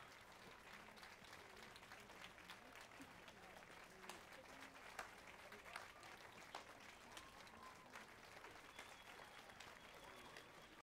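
A man claps his hands slowly.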